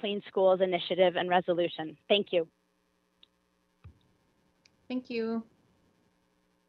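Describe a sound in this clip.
A young woman speaks earnestly through an online call.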